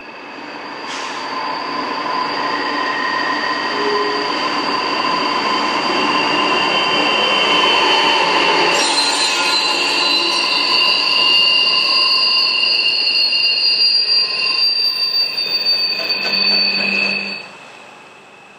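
A locomotive horn blares in long steady blasts.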